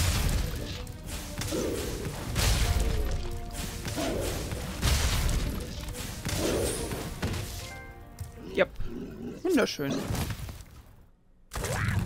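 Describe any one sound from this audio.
A large monster roars loudly.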